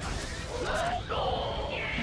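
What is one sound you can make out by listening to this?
Electric lightning crackles loudly.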